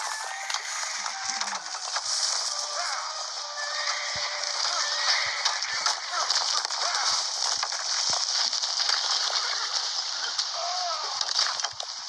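Horse hooves thud on the ground.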